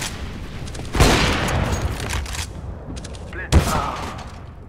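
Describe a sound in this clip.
Gunshots ring out close by.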